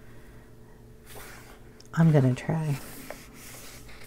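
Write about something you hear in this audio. A paper page is turned over with a soft rustle.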